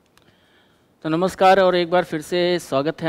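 A man speaks clearly into a microphone, close by.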